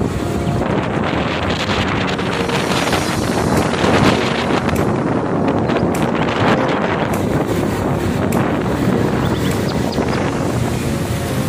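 Wind rushes loudly past, as if heard outdoors while moving.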